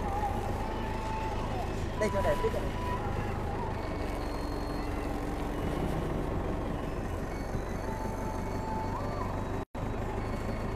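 A forklift engine rumbles steadily up close.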